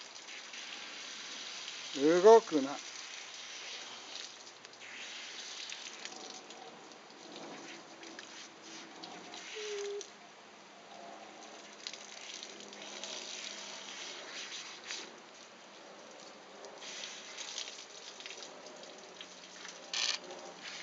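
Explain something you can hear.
Water hisses from a hose nozzle and splashes onto a wet dog's fur.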